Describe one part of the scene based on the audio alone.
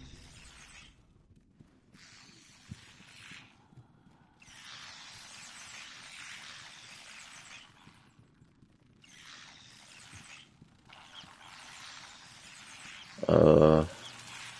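Soft footsteps pad across a wooden floor.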